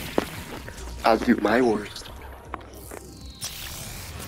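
A magical burst roars and sizzles.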